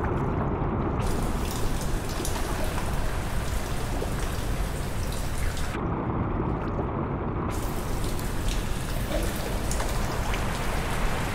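Water drips and splashes steadily onto a surface above.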